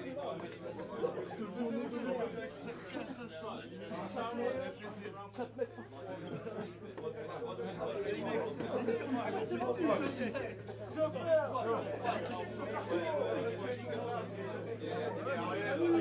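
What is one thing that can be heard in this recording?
A crowd of men chatter and shout nearby.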